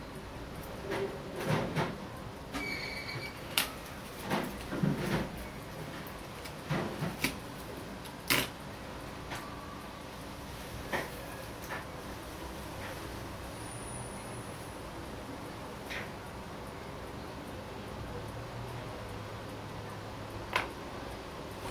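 Small metal parts of a wristwatch click and tap as they are handled.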